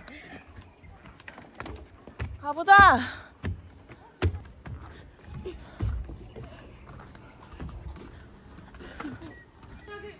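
Footsteps thud on a wooden deck.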